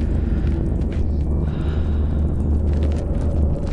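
A fire crackles and hisses nearby.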